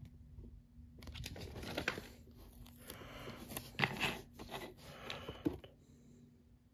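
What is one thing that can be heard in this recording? Plastic toy parts click and rattle as hands fit them together.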